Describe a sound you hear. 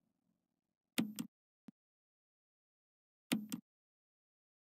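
Short menu clicks and chimes sound.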